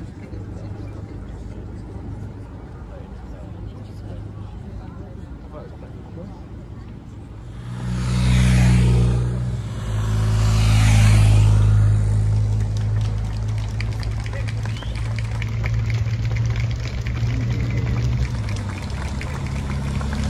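A large roadside crowd murmurs outdoors.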